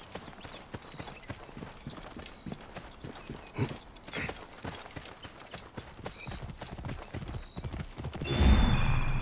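Footsteps rustle quickly through tall dry grass.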